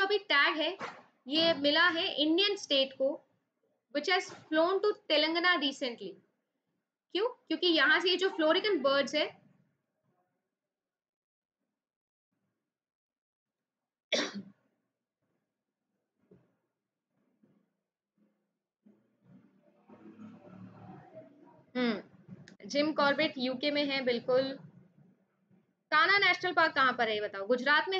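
A young woman speaks clearly into a close microphone, explaining in a teaching tone.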